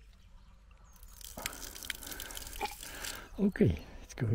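Water splashes out of a valve onto stones.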